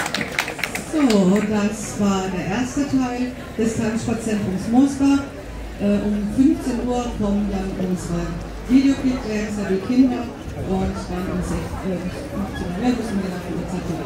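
A man speaks loudly into a microphone over loudspeakers.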